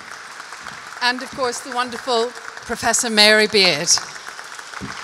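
A woman speaks into a microphone in a large echoing hall.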